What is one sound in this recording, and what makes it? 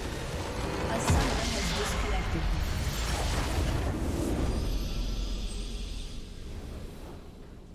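A bright magical whoosh swells as the game ends.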